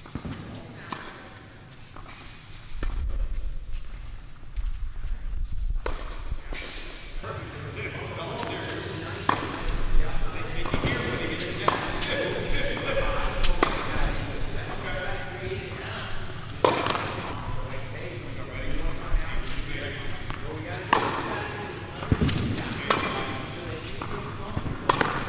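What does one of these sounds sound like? Tennis balls are struck sharply by rackets in a large echoing hall.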